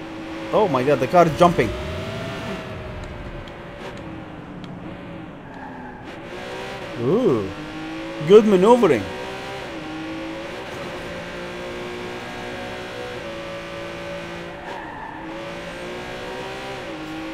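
A car engine hums steadily as a car drives.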